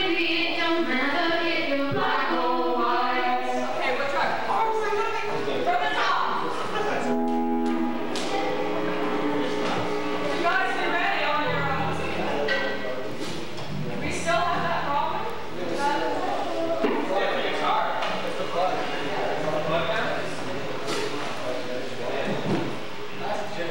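Drums are played softly in the background.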